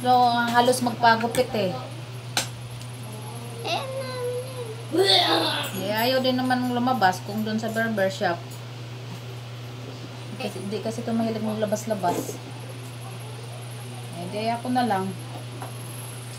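A woman talks close by in a calm voice.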